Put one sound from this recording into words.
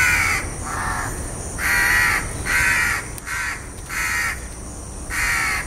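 A crow caws loudly and repeatedly, close by.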